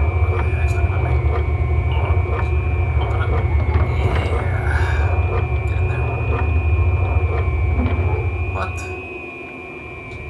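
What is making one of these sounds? A man speaks quietly into a headset microphone.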